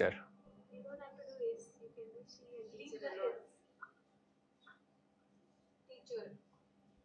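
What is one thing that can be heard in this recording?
A young boy reads out slowly into a microphone.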